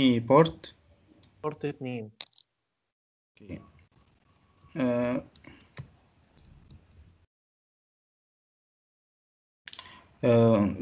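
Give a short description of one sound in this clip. A man speaks in short bursts through an online call.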